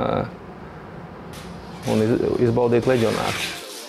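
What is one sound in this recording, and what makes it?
Fabric rustles as a man pulls a jersey over shoulder pads.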